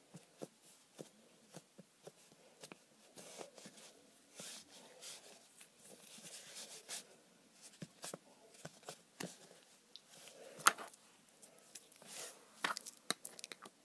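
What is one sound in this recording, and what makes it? Fingers tap and rub on a wooden tabletop.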